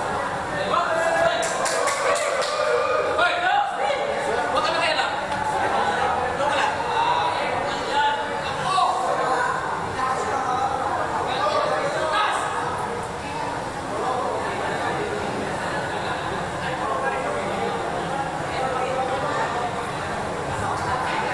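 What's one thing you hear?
A crowd of men talks and calls out loudly in an echoing hall.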